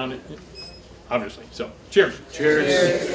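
An elderly man speaks aloud to a small group.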